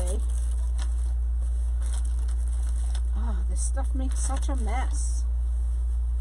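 Plastic wrap crinkles as hands handle it.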